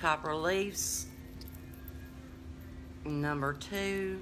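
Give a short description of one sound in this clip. Beaded necklaces clink and rattle.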